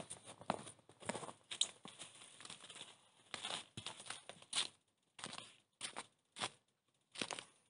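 Tent fabric rustles.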